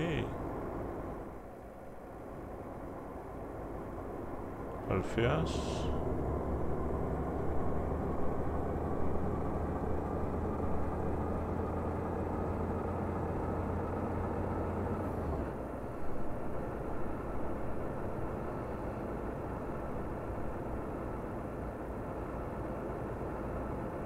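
A truck engine hums steadily as the truck drives along a road.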